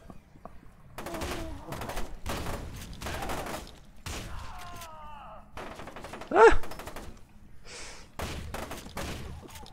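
A gun fires in rapid bursts of shots.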